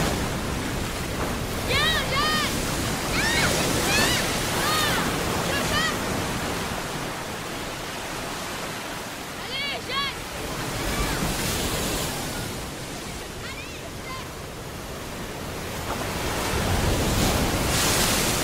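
Waves crash and wash in the surf.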